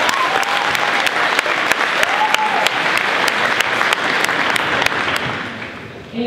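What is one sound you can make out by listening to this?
A spectator nearby claps hands.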